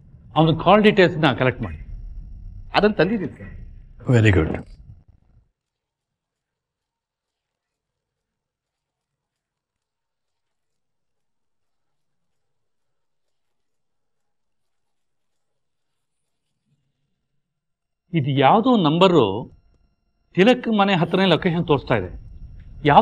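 A man speaks firmly and close by.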